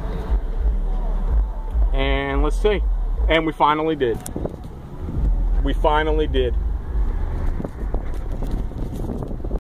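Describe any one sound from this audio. A car engine hums low and steady, heard from inside the car.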